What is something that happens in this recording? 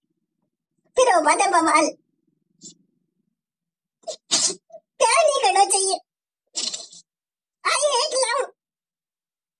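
A young woman speaks close by in short bursts with a high, altered voice.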